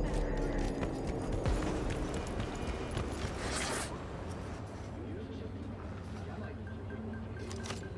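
Footsteps walk on a hard floor.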